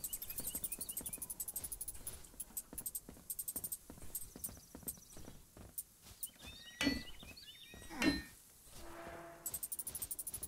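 Quick bright game ticks patter rapidly as items are collected.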